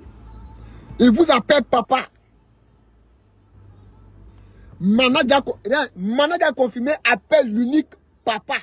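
A young man speaks animatedly, close up.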